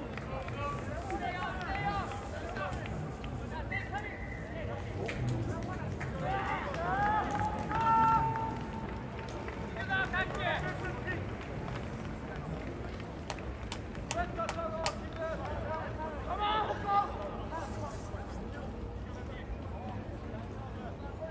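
Young men shout and call to each other from a distance outdoors.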